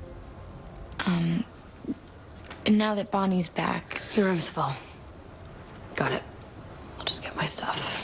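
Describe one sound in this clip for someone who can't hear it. A young woman speaks quietly and tensely, close by.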